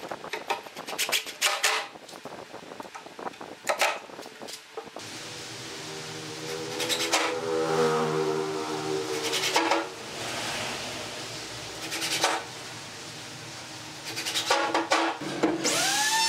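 A cordless drill whirs in short bursts, driving screws.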